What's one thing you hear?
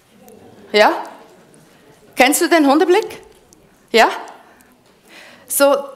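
A woman speaks with animation through a headset microphone in a large echoing hall.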